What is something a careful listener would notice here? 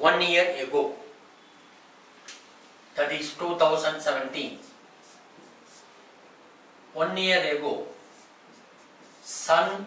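A man speaks calmly into a close microphone, explaining in short phrases.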